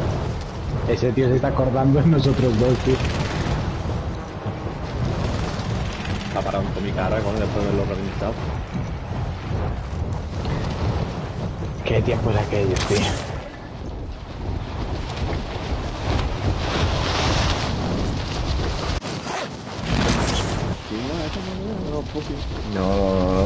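Wind rushes steadily past a parachute in flight.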